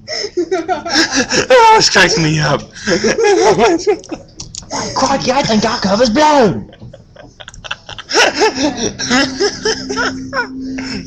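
A young man laughs loudly and hysterically close to a microphone.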